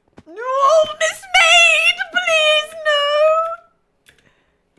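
A young woman sings out in a high, drawn-out voice into a close microphone.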